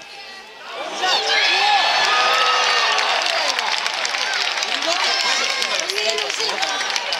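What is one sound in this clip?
A small crowd cheers and shouts loudly.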